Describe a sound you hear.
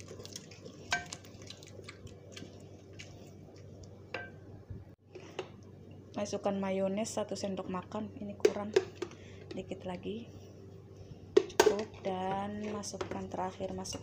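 A wooden spoon scrapes and knocks against a metal pot as food is stirred.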